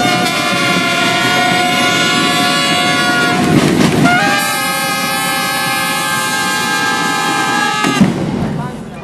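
A brass band plays trumpets loudly outdoors.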